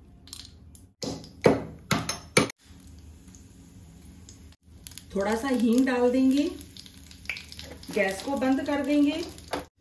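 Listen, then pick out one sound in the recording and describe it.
Spices sizzle in hot oil in a small pan.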